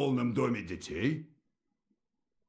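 A man speaks in a low, calm voice.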